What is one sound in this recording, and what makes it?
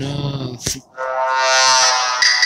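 A deep, rising electronic tone swells from a game.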